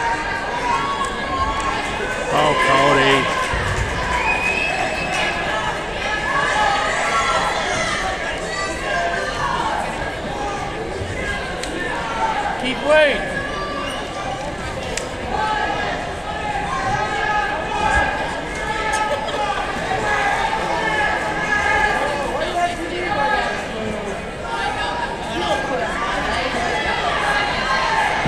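A crowd of young men and boys shouts and cheers throughout, echoing in a large gym.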